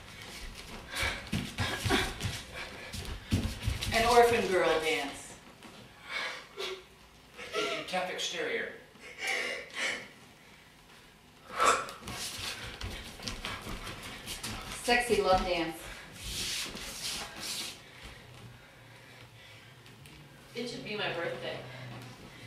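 Footsteps thump and shuffle on a wooden floor.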